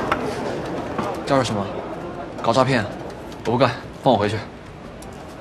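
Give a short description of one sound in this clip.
A young man speaks with urgency, close by.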